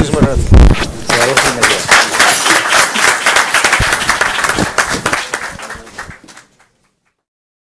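An audience applauds and then fades away.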